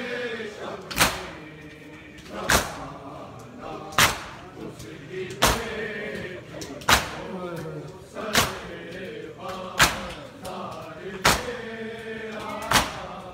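Men beat their chests in unison with loud, regular slaps.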